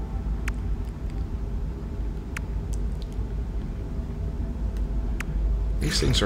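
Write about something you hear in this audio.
Soft electronic clicks tick now and then.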